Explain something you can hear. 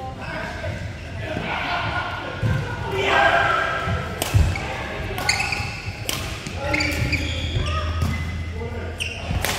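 Players' voices call out across the hall.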